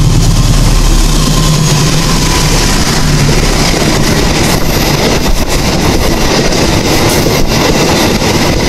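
Train wheels clatter rhythmically over the rail joints.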